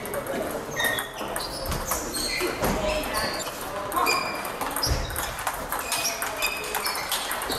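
Table tennis balls click rapidly on tables and paddles, echoing in a large hall.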